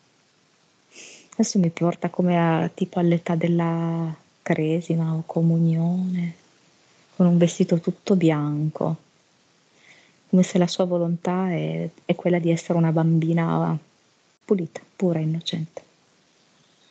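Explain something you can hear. A man speaks calmly into a headset microphone, heard through an online call.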